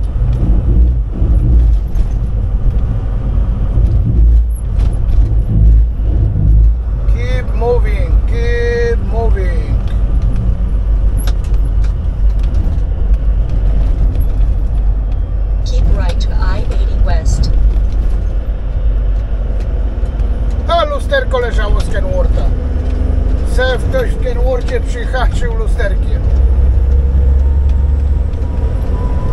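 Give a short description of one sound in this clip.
Tyres roll on the road with a steady hum.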